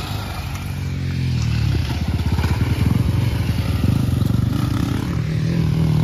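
A dirt bike engine roars past close by, revving hard.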